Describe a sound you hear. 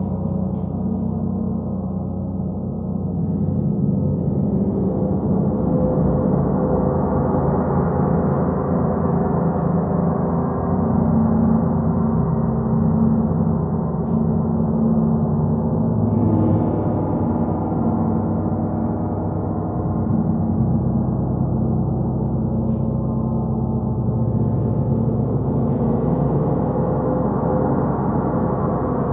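Large hanging gongs are played with a mallet and ring on in a deep, overlapping hum.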